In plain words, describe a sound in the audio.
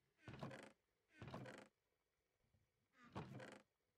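A wooden chest creaks open and thuds shut.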